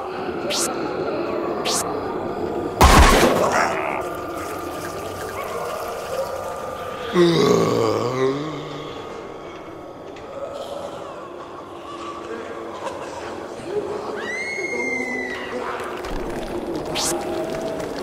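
A bowling ball rumbles as it rolls down a lane.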